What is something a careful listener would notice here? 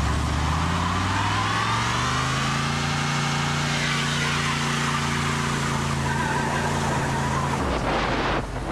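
Tyres squeal as they spin on the road.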